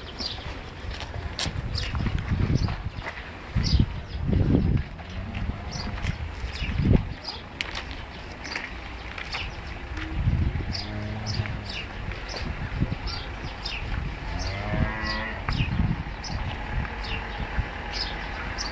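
A calf snuffles and sniffs at the ground close by.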